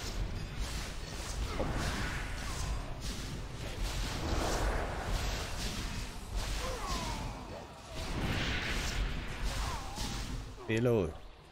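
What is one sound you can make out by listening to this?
Spells crackle and whoosh in a game battle.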